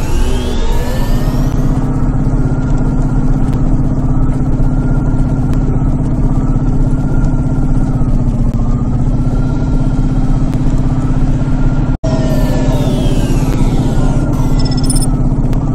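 A hovering vehicle's engine hums steadily with a low drone.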